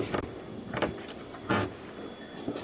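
Objects knock against a door up close.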